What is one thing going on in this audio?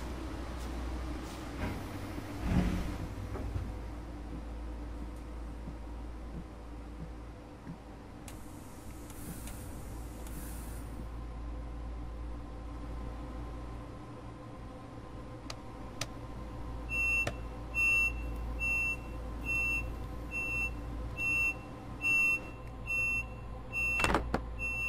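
A train rumbles along with a steady low hum.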